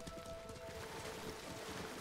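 Water splashes under a horse's hooves.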